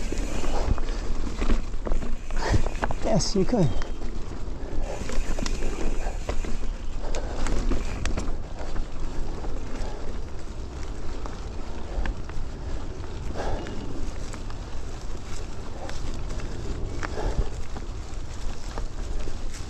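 A bicycle rattles and clanks over bumps.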